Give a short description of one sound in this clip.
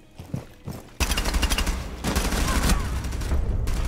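Rapid bursts of gunfire ring out loudly.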